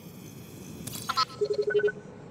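A small robot chirps a quick series of electronic beeps.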